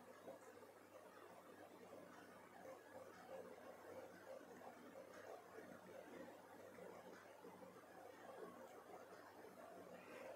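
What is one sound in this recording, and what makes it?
A sewing machine whirs steadily as it stitches fabric.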